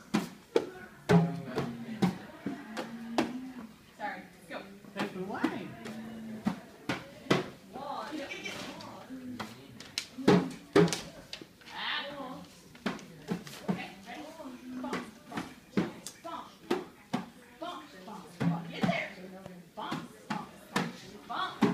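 A hand drum is struck with sharp taps.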